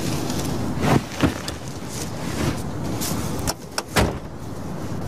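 A car door opens and shuts with a thump.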